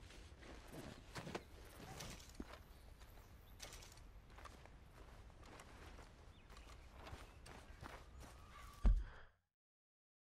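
Footsteps crunch through grass.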